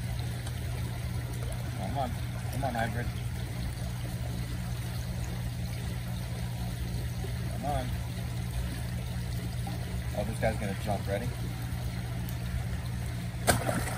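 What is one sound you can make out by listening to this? Water splashes softly as a hand dabbles in it.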